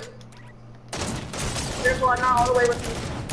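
A sniper rifle fires a loud shot.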